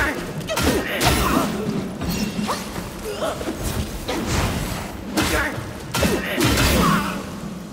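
Fire bursts and crackles.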